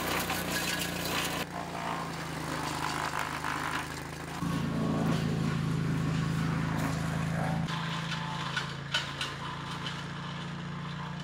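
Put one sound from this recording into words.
A wood chipper engine runs with a steady low drone.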